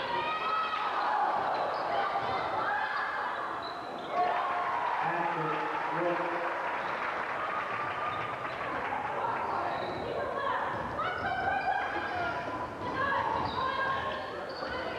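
A crowd of spectators cheers and chatters.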